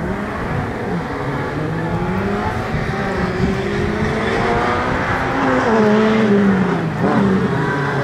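A rally car engine revs hard and shifts gears as the car speeds closer.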